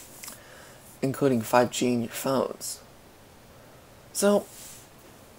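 A young man speaks calmly and close to the microphone.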